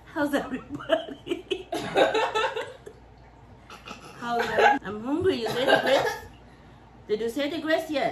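Young women laugh together.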